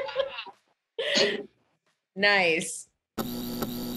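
A woman speaks cheerfully close up.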